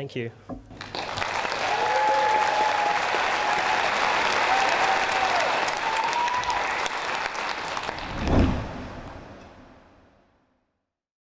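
A large crowd applauds and cheers, then the applause fades away.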